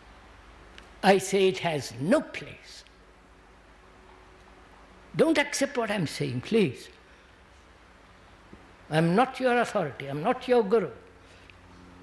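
An elderly man speaks slowly and calmly into a microphone, in short phrases with long pauses.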